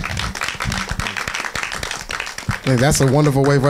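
A small audience claps.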